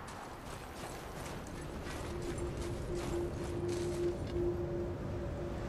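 Footsteps crunch on snow and rock.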